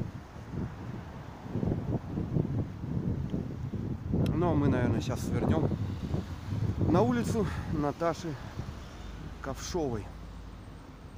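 Wind buffets outdoors.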